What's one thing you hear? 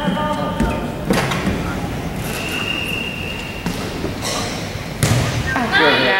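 A volleyball thumps off a girl's forearms.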